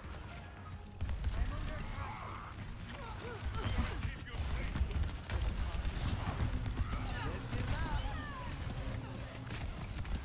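Gunfire and explosions boom and crackle in a video game.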